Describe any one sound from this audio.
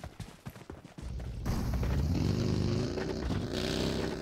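A buggy engine roars nearby.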